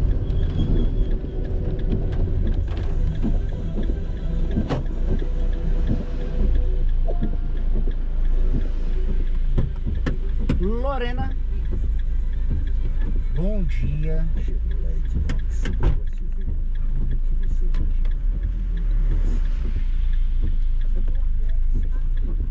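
Rain patters on a car's windshield.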